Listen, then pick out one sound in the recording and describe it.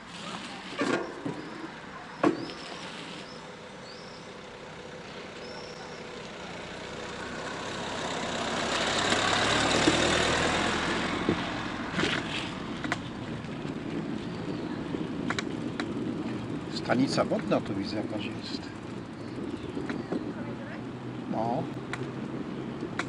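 Bicycle tyres roll over pavement with light rattling.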